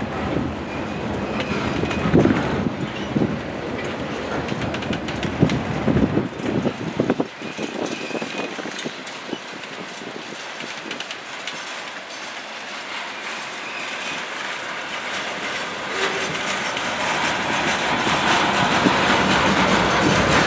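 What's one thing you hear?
A long freight train rumbles past nearby, wheels clattering over the rail joints.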